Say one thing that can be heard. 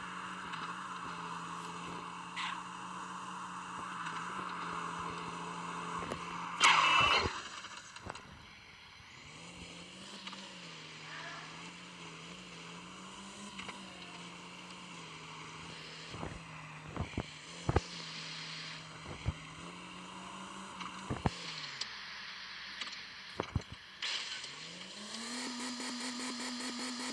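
A car engine hums steadily, rising and falling in pitch as it speeds up and slows.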